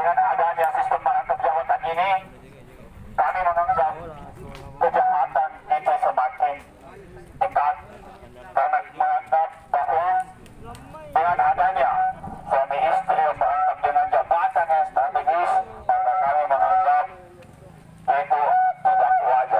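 A young man shouts loudly through a megaphone, in bursts with pauses.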